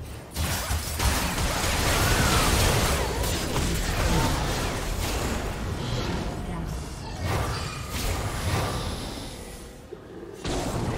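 Game spell effects whoosh, crackle and clash in a fast fight.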